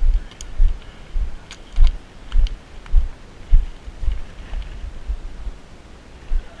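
Footsteps walk at a quick pace over a dry forest floor with twigs and pine needles.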